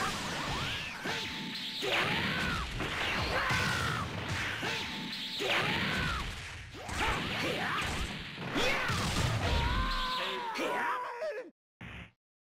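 Punches and kicks land with sharp thuds in a fast fight.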